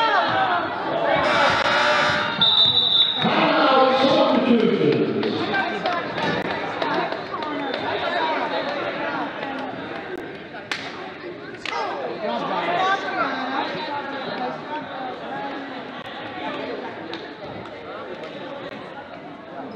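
Young girls call out to each other in an echoing gym.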